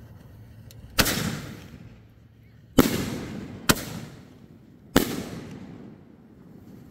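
Firework shells burst overhead with sharp booms that echo and fade outdoors.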